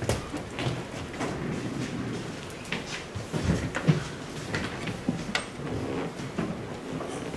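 A young man speaks calmly into a microphone in a large echoing room.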